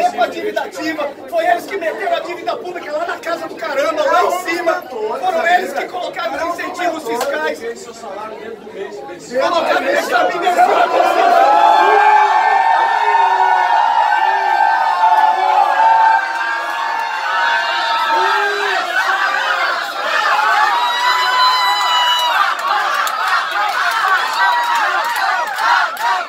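A crowd of men and women talk and shout over each other in an echoing hall.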